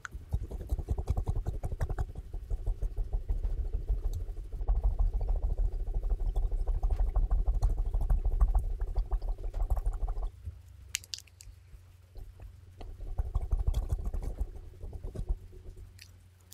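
A fluffy brush swishes and brushes against a microphone up close.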